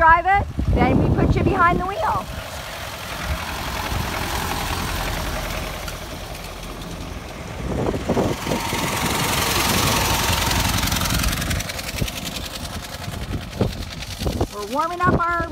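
An old car engine putters and chugs nearby, then fades into the distance.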